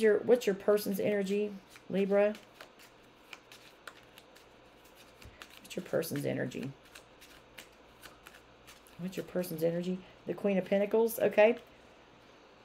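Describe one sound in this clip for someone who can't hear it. Playing cards riffle and snap as they are shuffled.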